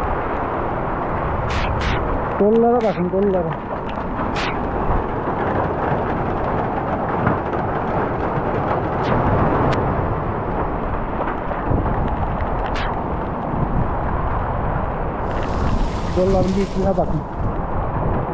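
Rain patters steadily on grass outdoors.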